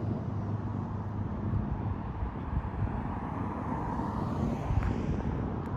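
A car drives along the street at a distance.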